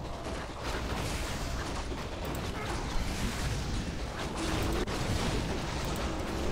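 Weapons clash and spells crackle in a busy battle.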